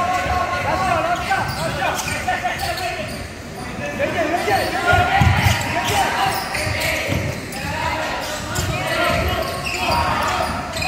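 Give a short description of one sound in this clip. Sneakers squeak sharply on a hardwood court, echoing in a large hall.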